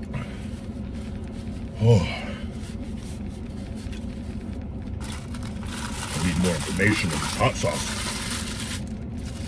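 A food wrapper crinkles in a man's hands.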